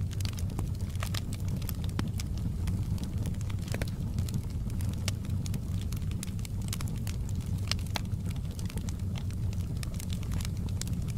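Flames roar softly with a low, steady rumble.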